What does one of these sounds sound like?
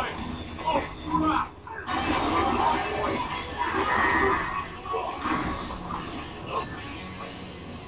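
An electric guitar plays loud, distorted heavy metal riffs.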